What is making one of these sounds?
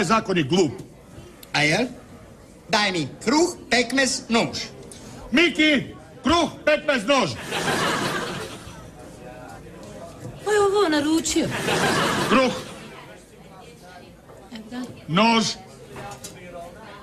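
A middle-aged man talks with animation, close by.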